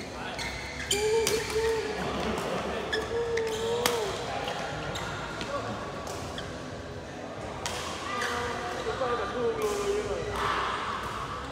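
Sports shoes squeak sharply on a court floor.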